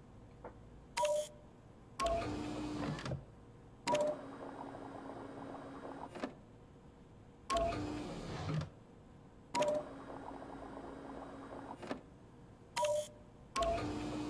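Short electronic beeps sound.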